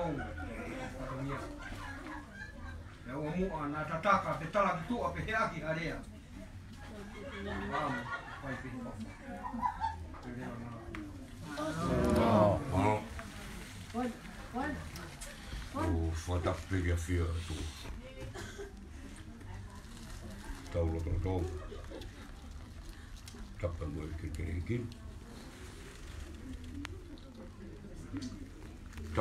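Adult men and women talk and murmur nearby.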